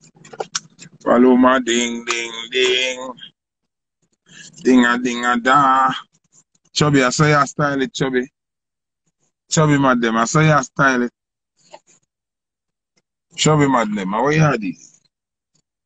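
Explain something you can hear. A man talks with animation close to the microphone, in short bursts with pauses.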